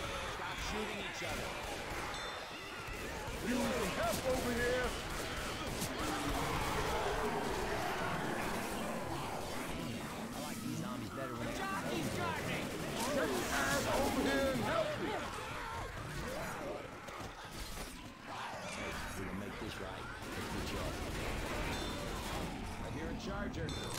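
Gunshots fire rapidly.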